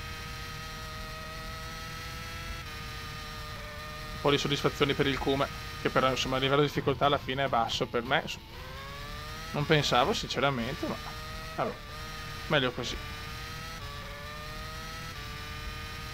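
A racing car engine whines at high revs, shifting gears as it speeds up and slows down.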